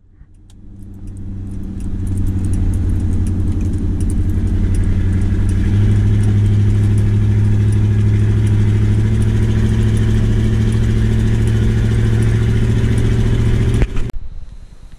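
A car engine rumbles loudly and revs up.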